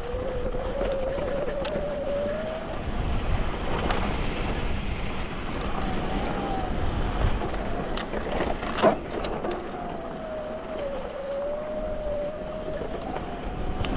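Knobby bike tyres crunch and rumble over a dirt trail.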